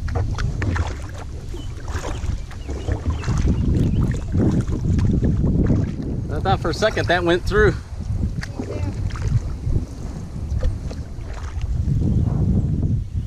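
Water laps against a kayak hull.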